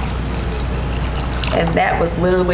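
Water pours and splashes into a metal bowl.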